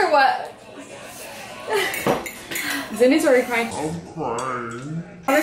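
Young women laugh close by.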